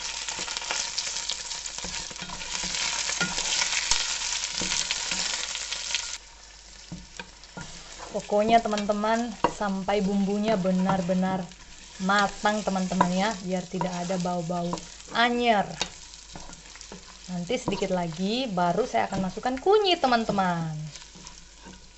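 A wooden spoon scrapes and stirs against a metal pot.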